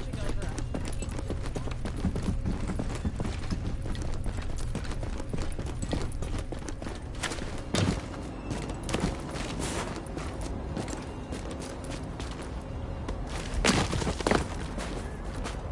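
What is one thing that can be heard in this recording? Footsteps tread steadily on a hard floor, then crunch on snow.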